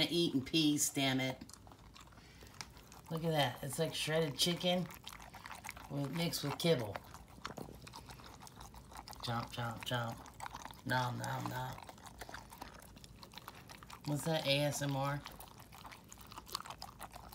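A dog eats wet food from a bowl with loud chewing and lapping.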